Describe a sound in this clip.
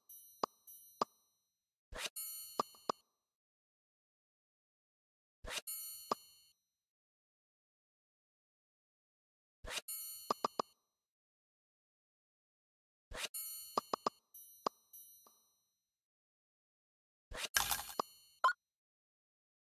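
Game chimes and sparkling clicks ring out in short bursts as tiles match and clear.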